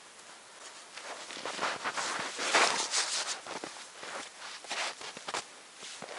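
Footsteps crunch in snow.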